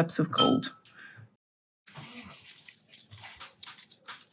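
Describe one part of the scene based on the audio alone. A metal paint tin is set down on paper with a soft tap.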